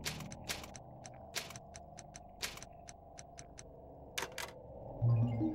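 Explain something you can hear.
Short electronic clicks tick one after another.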